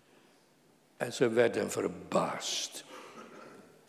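An elderly man speaks calmly into a microphone in a large echoing room.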